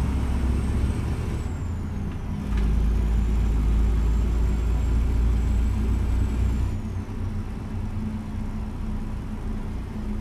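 A truck engine hums and rumbles steadily as it drives.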